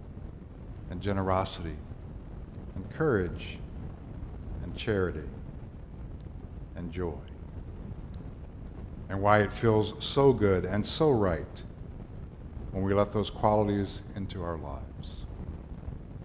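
A middle-aged man speaks calmly into a microphone, in a room with some echo.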